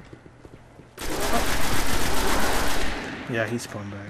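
A rifle fires a rapid, loud burst of shots.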